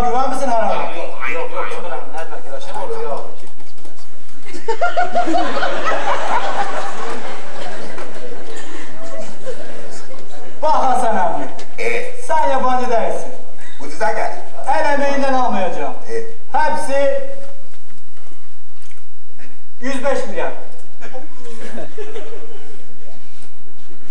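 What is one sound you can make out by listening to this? Men speak and call out with animation in a large echoing hall.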